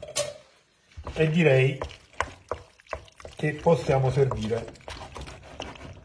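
A wooden spoon scrapes and stirs food in a metal pan.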